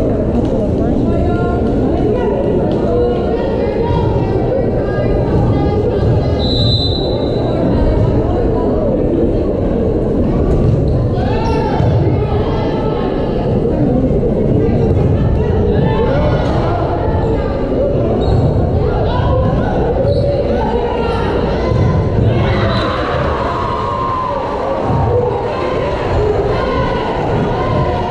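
A crowd chatters and cheers throughout a large echoing gym.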